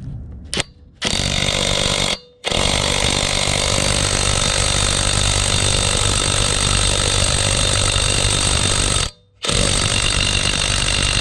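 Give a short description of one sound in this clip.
A cordless impact wrench hammers loudly and steadily on a wheel nut.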